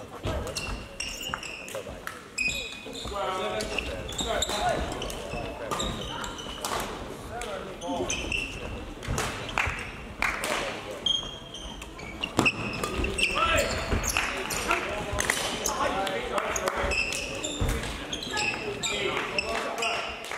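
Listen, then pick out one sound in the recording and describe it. Shuttlecocks are struck with sharp pops of badminton rackets in a large echoing hall.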